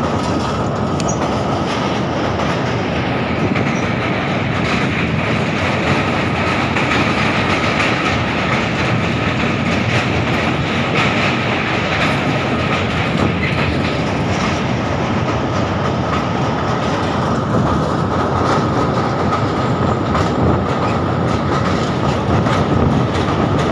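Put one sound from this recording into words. A train rumbles steadily, its wheels clattering on the rails.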